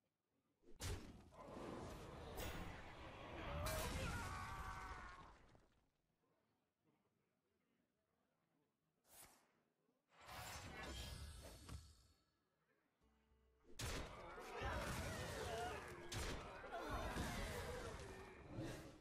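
Magical chimes and sparkles ring out as spells are cast.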